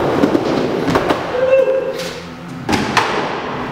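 Skateboard wheels clack against the bowl's edge.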